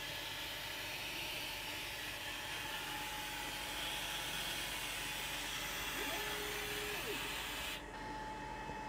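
A diode laser engraver whirs as it etches.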